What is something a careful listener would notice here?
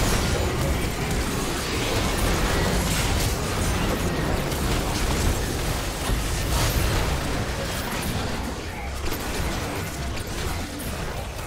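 Magic blasts and crackling spell effects burst rapidly during a video game battle.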